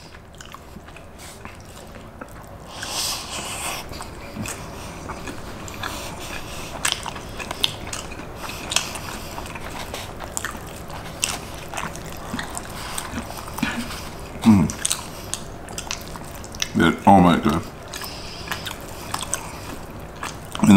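Food is chewed and slurped close to a microphone.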